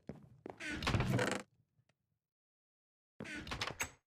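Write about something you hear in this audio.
A wooden chest creaks open and shuts.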